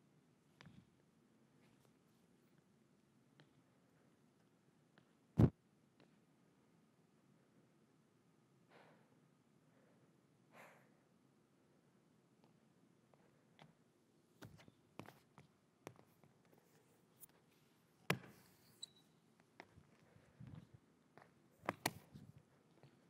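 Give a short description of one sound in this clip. Feet thud and scuff on a hard stage floor.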